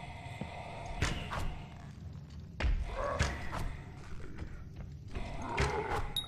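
Magic blasts whoosh and crackle in quick bursts.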